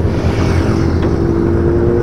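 A motorcycle roars past on the road.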